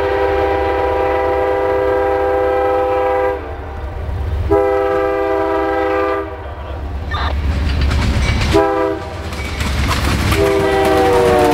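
A diesel locomotive engine rumbles as it approaches.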